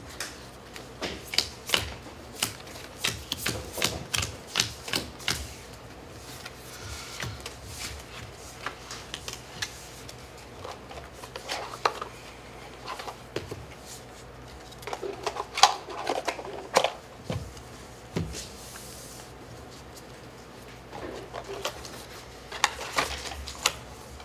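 A man shuffles a stack of cards in his hands.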